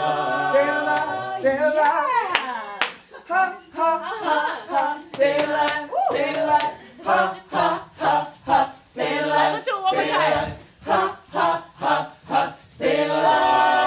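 Bare feet stamp and slap on a stage floor.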